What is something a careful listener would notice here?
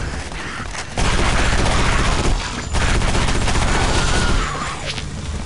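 Gunfire bursts out loudly in rapid shots.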